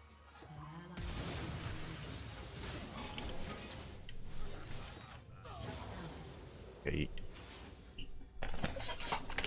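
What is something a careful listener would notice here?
Game sound effects clash and chime.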